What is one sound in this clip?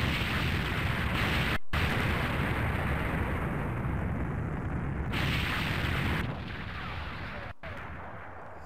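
Explosions rumble and roar in a game.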